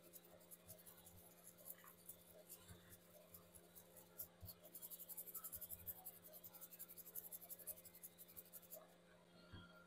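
A stiff brush scrubs with soft, rapid scratching.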